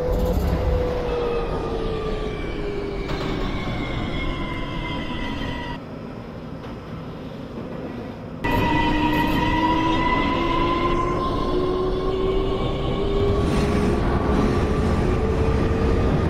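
A train's electric motors whine, sliding down and then rising in pitch.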